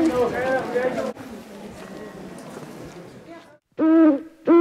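A crowd of people talks and murmurs in a large echoing hall.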